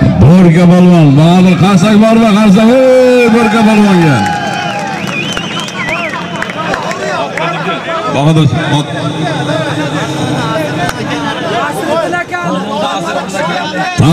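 A crowd of men shout and clamour close by.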